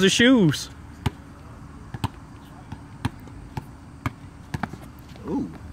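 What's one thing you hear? A basketball bounces on hard ground outdoors.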